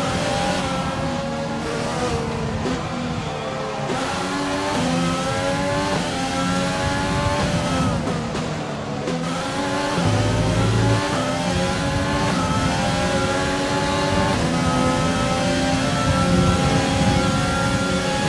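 A racing car engine whines at high revs, rising and dropping in pitch as the gears shift.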